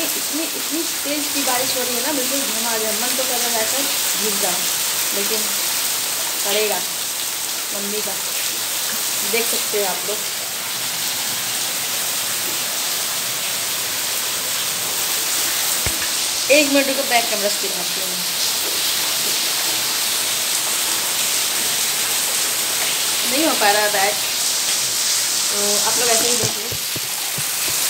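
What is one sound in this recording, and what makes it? A young woman talks casually, close by.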